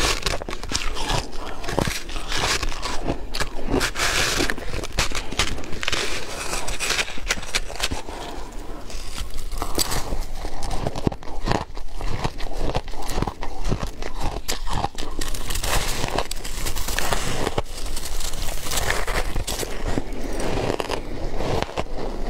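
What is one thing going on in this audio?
A spoon scrapes through crumbly food.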